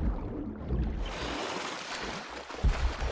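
Water sloshes and splashes as a swimmer paddles at the surface.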